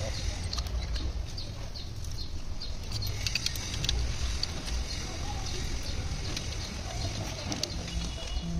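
Metal tools clink and tap against an engine part.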